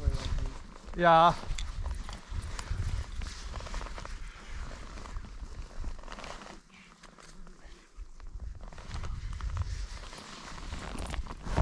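Wind rushes and buffets loudly past the microphone.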